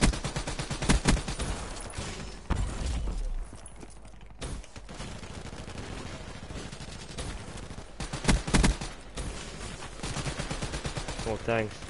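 Gunfire rattles in short bursts.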